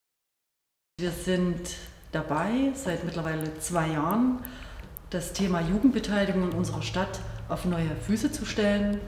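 A middle-aged woman speaks calmly and close to a microphone.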